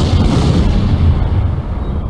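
An explosion booms with a deep rumble.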